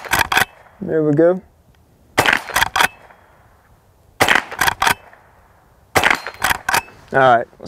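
A pistol fires in rapid bursts of loud shots outdoors.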